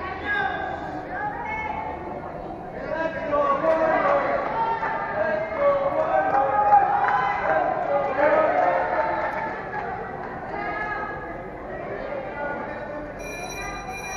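A crowd of children shouts and cheers in a large echoing hall.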